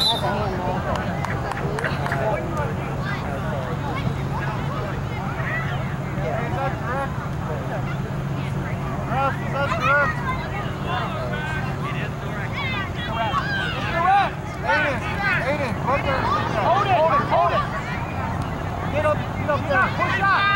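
Young children shout and call out across an open field.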